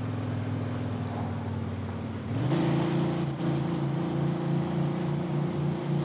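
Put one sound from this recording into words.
A car engine hums steadily and rises in pitch as the car speeds up.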